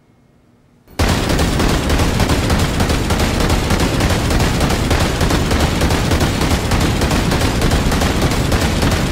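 Twin heavy machine guns fire in rapid, continuous bursts.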